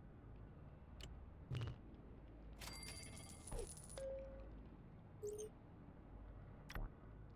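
Interface buttons click softly.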